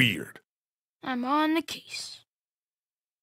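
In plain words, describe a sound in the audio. A boy shouts eagerly.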